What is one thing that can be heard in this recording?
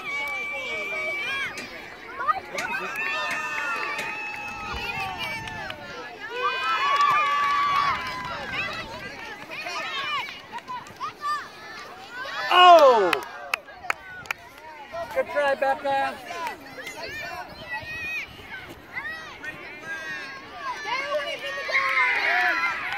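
Children shout and call out excitedly nearby.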